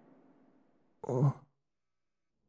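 A man speaks a short word close by.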